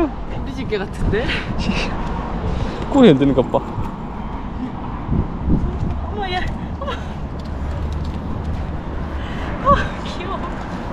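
A young woman talks and laughs cheerfully close by.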